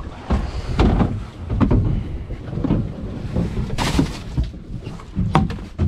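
Wet fish slap and thud as they are dropped into a box.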